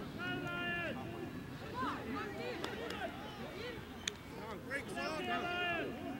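A group of boys shout and chant together outdoors.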